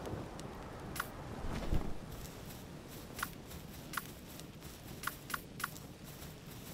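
Footsteps tap on rocky ground.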